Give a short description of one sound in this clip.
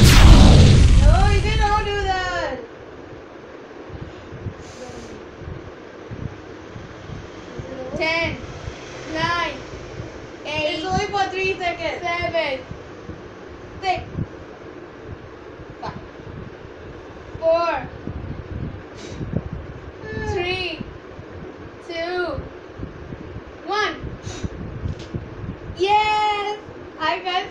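A young girl talks playfully nearby.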